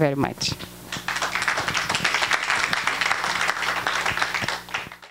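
A microphone is handled and rustles loudly at close range.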